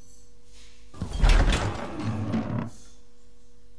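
A heavy wooden door bangs and creaks open.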